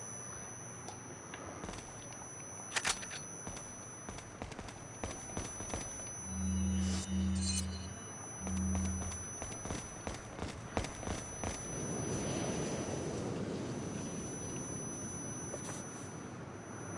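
Footsteps tap on a hard floor in an echoing room.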